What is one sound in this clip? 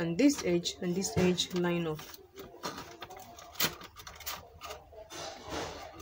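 Cardboard scrapes and taps as it is folded.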